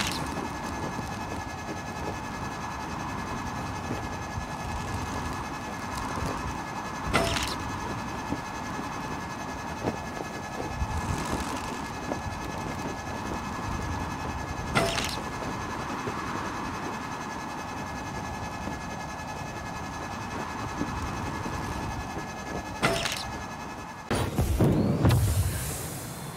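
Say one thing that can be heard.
Wind rushes steadily past a gliding flyer.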